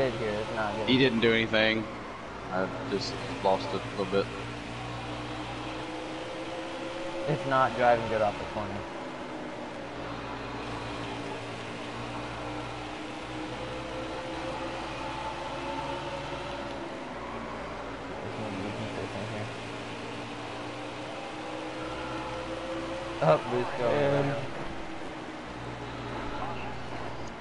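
A race car engine roars steadily, its pitch rising and falling.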